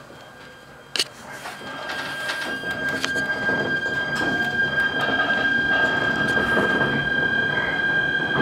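A train rumbles along the tracks, slowly gathering speed.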